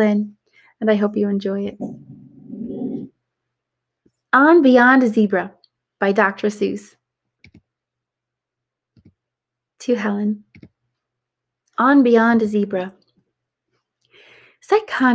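A young woman reads aloud in a lively voice, close to a microphone.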